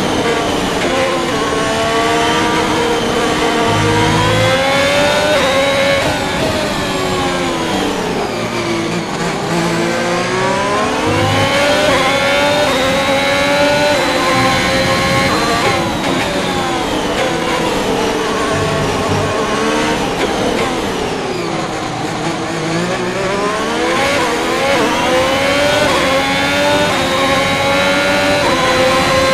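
A racing car engine roars loudly, its pitch rising through the gears and dropping as the car slows for corners.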